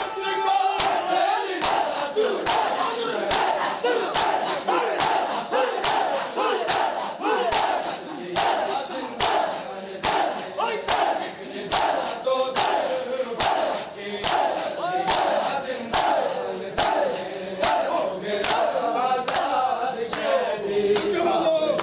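A crowd of men chants together loudly.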